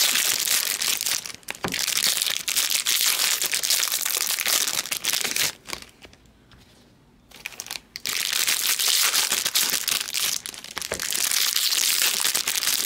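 Foil card packs crinkle and rustle as hands tear them open close by.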